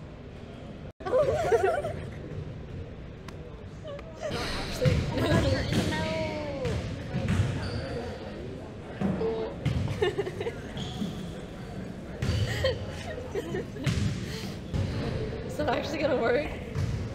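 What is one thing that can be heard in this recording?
Teenage girls laugh loudly close by.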